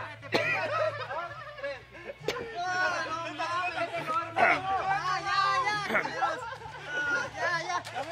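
Several young men shout and laugh excitedly outdoors.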